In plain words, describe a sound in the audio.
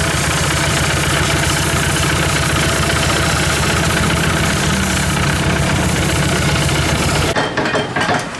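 A diesel engine runs loudly with a steady rattling chug, then cuts off.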